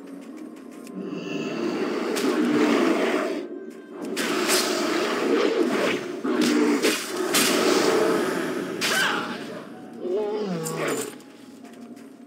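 Spell blasts and weapon hits clash in a quick fight.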